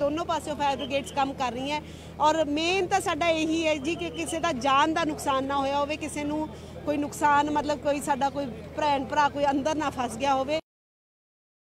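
A woman speaks with emotion into a microphone, close up.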